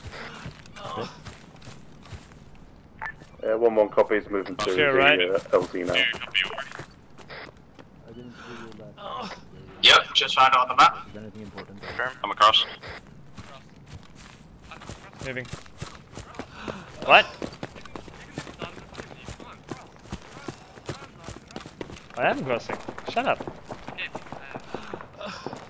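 Footsteps swish through grass and crunch on pavement.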